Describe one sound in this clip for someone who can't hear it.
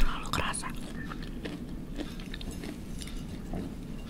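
A fork scrapes and taps on a plate.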